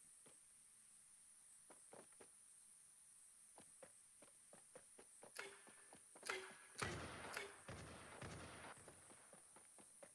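Footsteps thud quickly across wooden planks.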